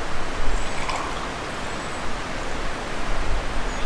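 Wine pours from a clay jug into a glass.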